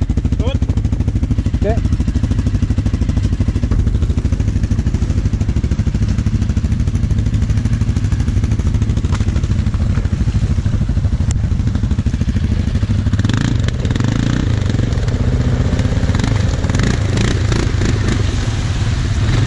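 An engine idles with a steady low rumble close by.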